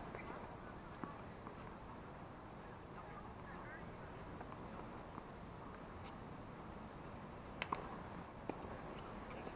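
A tennis ball is struck with a racket, the hits sharp and spaced apart.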